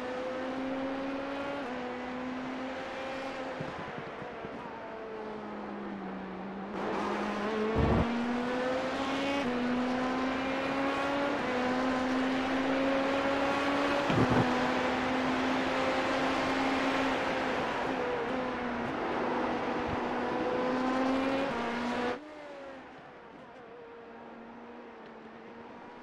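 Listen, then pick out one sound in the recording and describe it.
A racing car engine drones steadily, its pitch shifting up and down as it changes gear.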